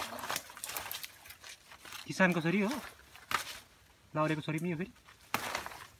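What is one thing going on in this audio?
Leaves rustle as a hand handles a plant.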